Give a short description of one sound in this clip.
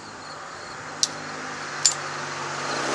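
A switch on a mower handle clicks.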